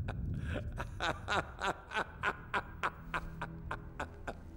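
An elderly man laughs in loud, rhythmic bursts.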